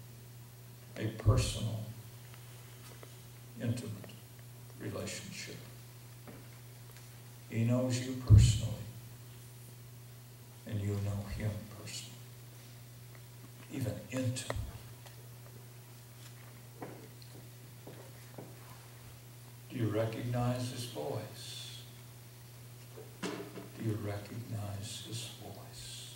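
An older man speaks slowly and deliberately into a microphone, with long pauses.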